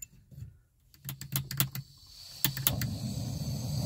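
A gas stove clicks as it is lit.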